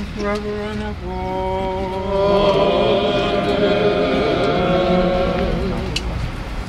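A group of men sing a hymn together outdoors.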